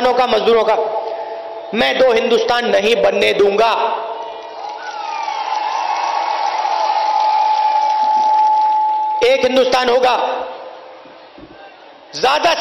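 A man speaks forcefully through a loudspeaker, echoing outdoors.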